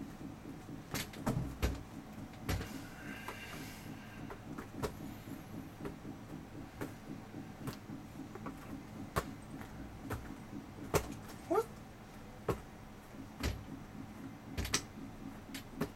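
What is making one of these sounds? A ball thuds as it is tossed and caught, close by.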